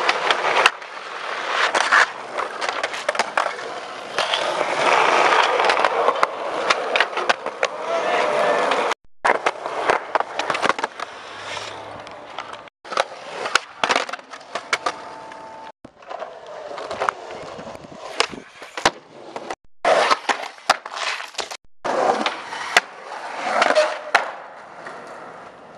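A skateboard pops and lands with sharp wooden clacks.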